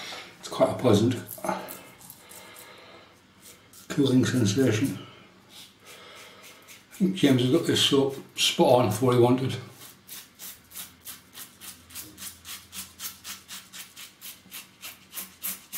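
A razor scrapes through stubble in short, quick strokes.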